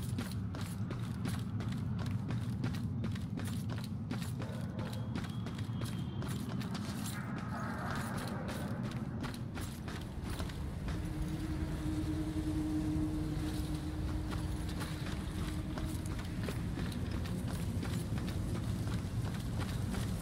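Footsteps tap quickly on hard ground.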